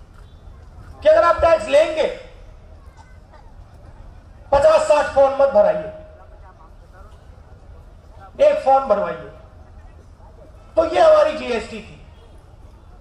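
A man speaks forcefully into a microphone through loudspeakers outdoors, in short bursts with pauses.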